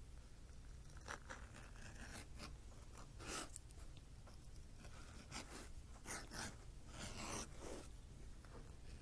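A tool scrapes and rasps along the edge of leather in short strokes.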